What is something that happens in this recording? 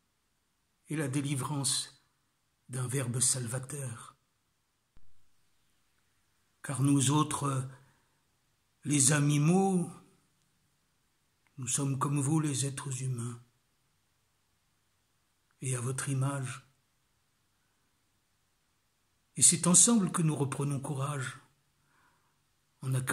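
An elderly man speaks calmly and closely into a microphone, in short phrases with pauses.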